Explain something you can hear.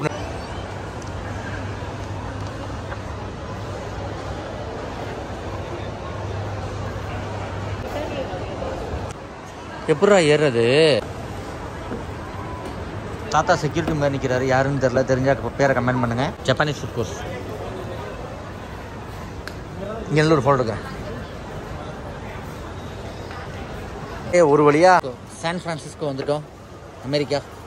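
Many people murmur and chatter in a large echoing hall.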